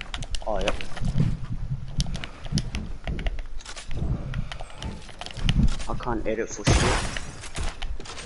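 Wooden building pieces snap into place with rapid clacking thuds.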